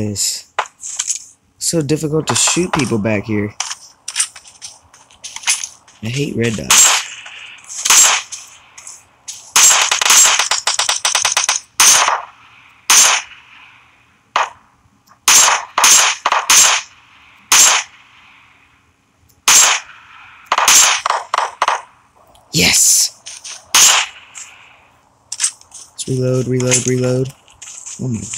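Rifle shots crack in quick single bursts, with echoes trailing off.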